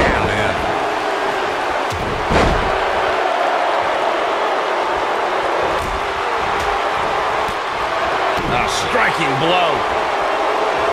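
A large crowd cheers and roars steadily in an arena.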